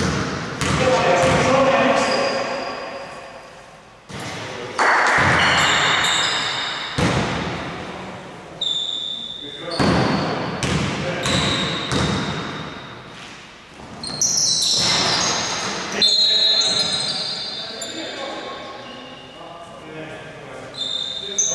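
Men call out to each other in an echoing hall.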